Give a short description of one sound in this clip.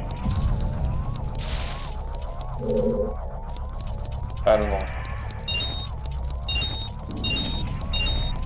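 A repeating video game melody of rising notes plays throughout.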